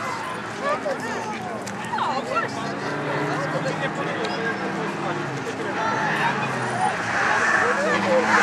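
A rally car engine approaches faintly from a distance.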